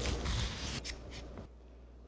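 A spoon scrapes the inside of an avocado.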